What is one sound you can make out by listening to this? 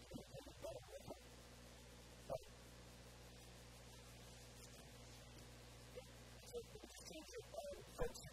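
Pages of a binder rustle as a man turns them.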